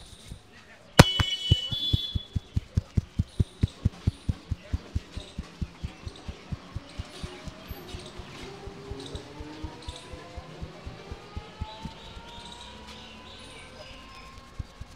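Hands slap and tap rhythmically on a man's head.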